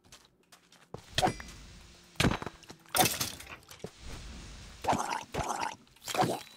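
Sword blows strike a creature in a fight.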